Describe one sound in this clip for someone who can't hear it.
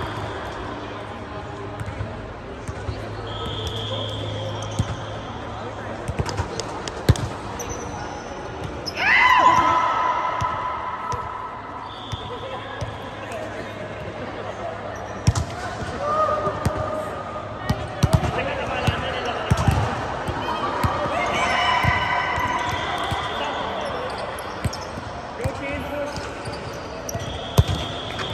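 A volleyball thumps off forearms and hands.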